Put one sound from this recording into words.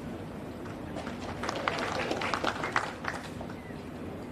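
A crowd of spectators claps and cheers.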